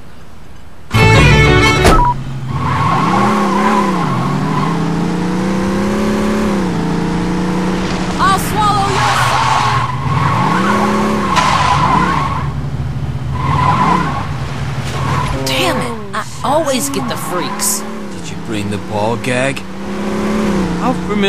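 A car engine revs up and down as the car speeds along.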